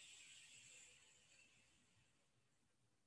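A woman breathes loudly through her nose.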